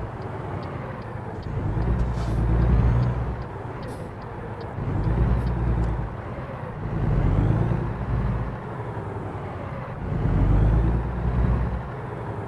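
A truck engine rumbles, rising and falling in waves.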